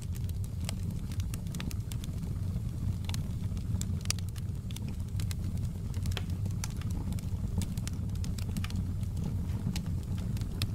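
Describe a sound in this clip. A wood fire crackles and pops steadily.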